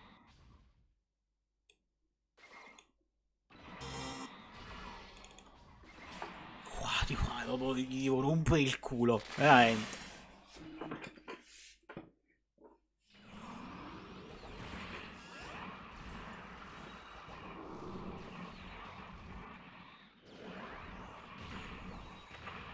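Video game music and effects play.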